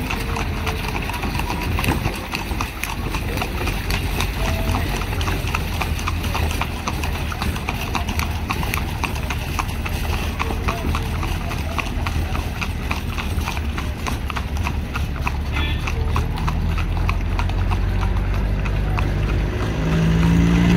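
Carriage wheels rumble over a road.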